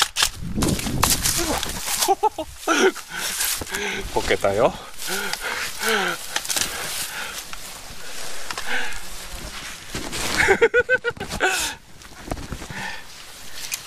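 Dry grass crunches underfoot.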